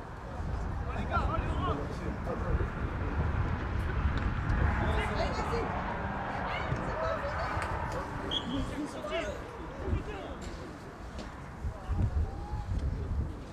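Young men shout to each other across a pitch.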